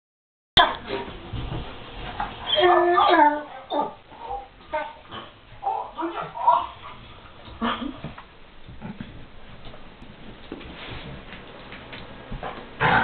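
Dogs growl playfully.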